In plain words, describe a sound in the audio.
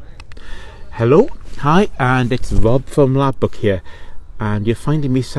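A middle-aged man speaks with animation, close to a microphone, outdoors.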